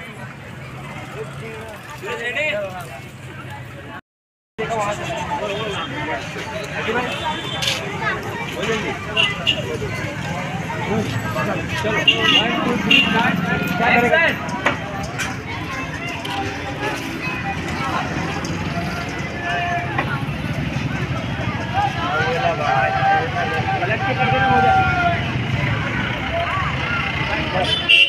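A crowd of people chatters in a busy street outdoors.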